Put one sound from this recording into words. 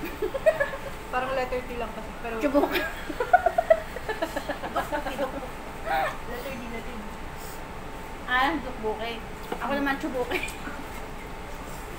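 A second young woman talks and laughs close by.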